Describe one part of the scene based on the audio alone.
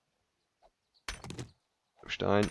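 A pickaxe strikes rock.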